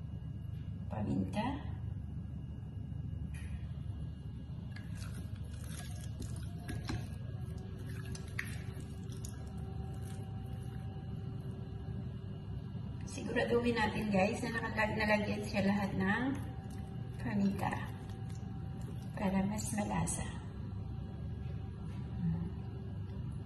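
A pepper shaker rattles as pepper is shaken out.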